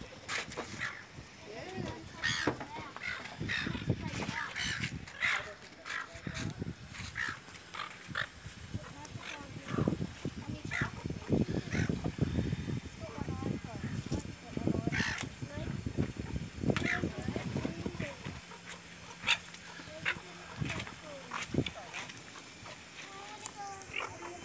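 Seagulls squawk and cry nearby.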